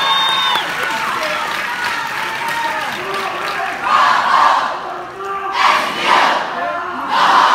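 A crowd of men and women murmurs and chatters in a large echoing hall.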